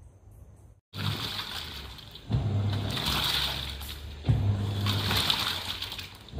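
A washing machine agitates, with water and laundry sloshing in surges.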